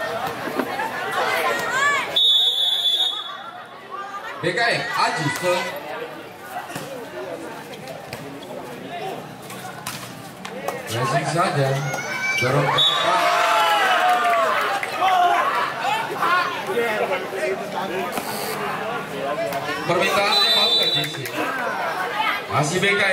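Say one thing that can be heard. A crowd cheers and shouts outdoors.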